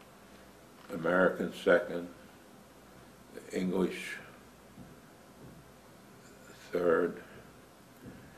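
An elderly man speaks calmly and slowly, close by, with long pauses.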